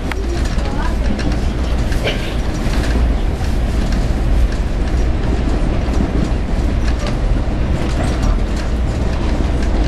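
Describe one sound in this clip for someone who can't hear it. A vehicle rumbles steadily as it travels along at speed.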